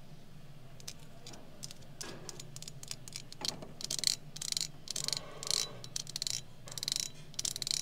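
Long fingernails tap and scratch on a hard painted surface.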